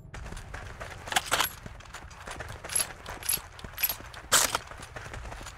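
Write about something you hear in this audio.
A rifle is reloaded with metallic clicks.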